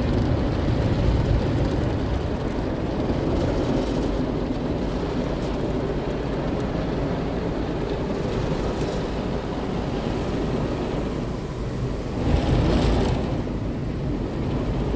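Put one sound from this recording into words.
Car wash brushes rumble and swish against a car's body.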